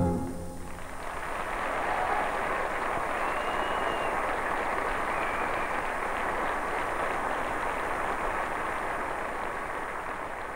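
A large audience applauds and cheers in a big echoing hall.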